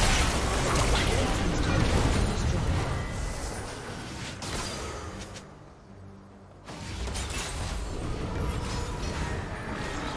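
Weapons clash and strike in quick bursts.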